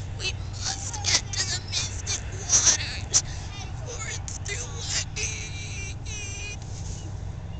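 A boy talks close by.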